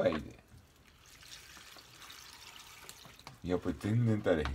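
Liquid pours from a carton into a pot.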